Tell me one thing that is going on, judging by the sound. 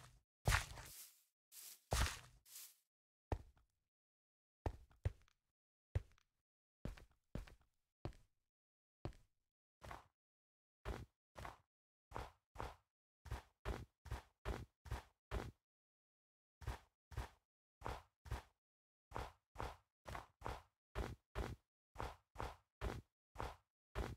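Footsteps crunch on stone and snow at a steady pace.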